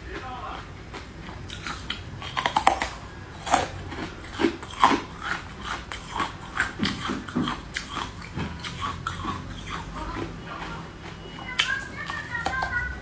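A young woman bites and chews a soft cake close to a microphone.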